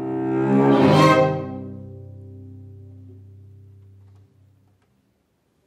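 A string quartet plays a loud closing chord that rings out and fades in a reverberant hall.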